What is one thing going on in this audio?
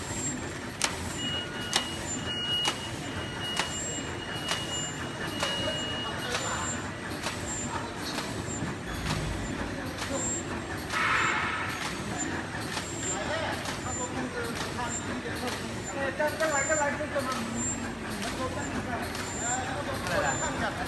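A packaging machine clicks in a quick, even rhythm.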